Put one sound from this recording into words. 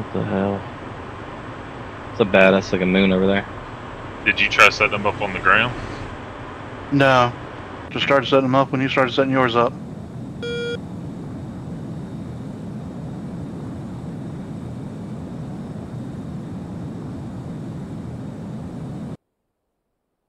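A jet engine drones steadily and low.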